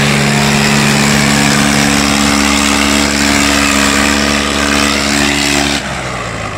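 A second tractor engine rumbles close behind.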